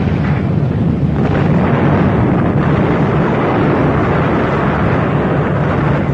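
Fire crackles and roars steadily.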